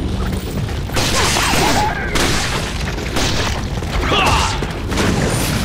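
A creature screeches and groans wildly.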